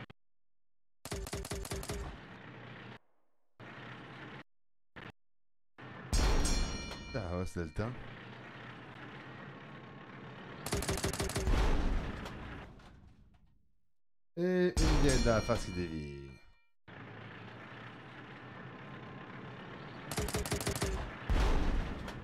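Small cannons fire with quick sharp bangs.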